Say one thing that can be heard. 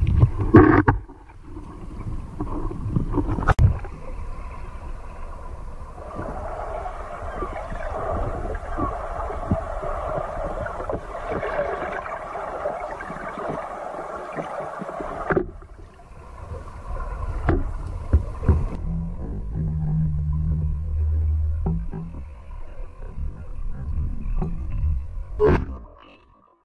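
Water rumbles and swishes close by, heard from underwater.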